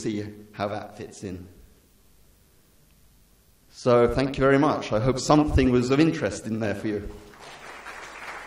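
A middle-aged man speaks with animation through a microphone in a large hall.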